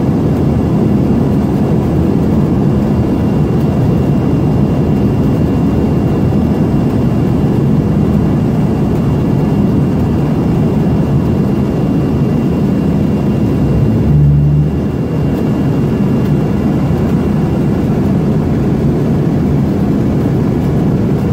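A regional jet's turbofan engines roar steadily in the cabin.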